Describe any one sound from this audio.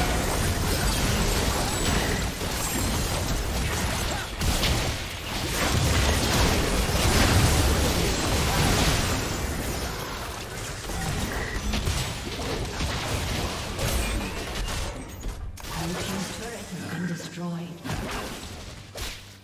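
Spell effects crackle and boom in a fast fantasy battle.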